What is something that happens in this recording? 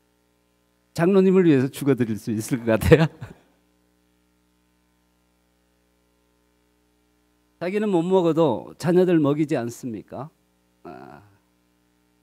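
A middle-aged man speaks with animation through a microphone.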